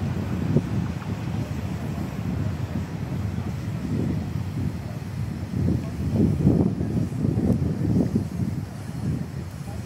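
A steam locomotive chuffs as it rolls slowly past.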